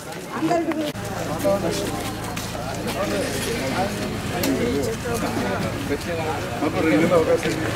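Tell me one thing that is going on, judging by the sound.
A crowd of men murmur and chat outdoors.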